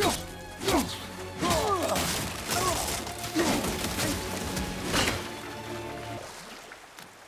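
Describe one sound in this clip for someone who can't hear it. An axe whooshes through the air and strikes with sharp impacts.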